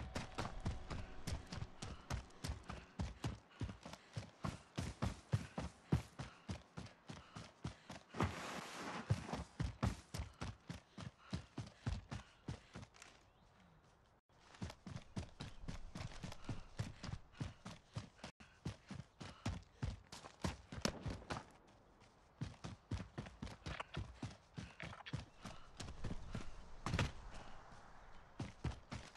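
Footsteps thud quickly and steadily as someone runs over ground.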